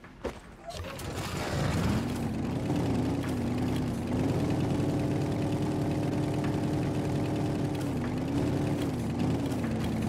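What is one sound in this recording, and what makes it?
A vehicle engine hums loudly, wavering up and down in pitch.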